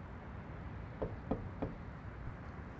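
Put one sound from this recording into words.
A man knocks on a window pane.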